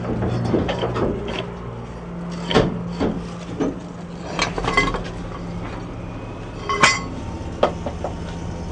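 Metal knocks and clanks sharply close by.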